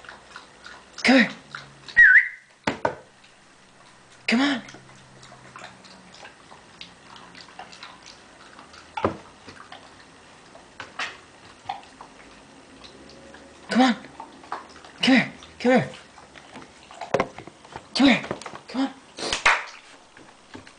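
A puppy barks in short, sharp yaps.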